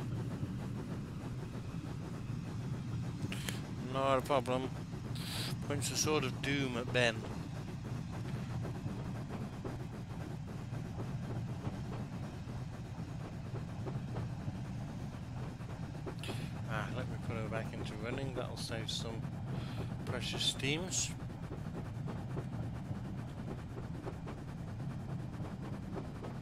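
A steam locomotive rumbles steadily as it runs along the track.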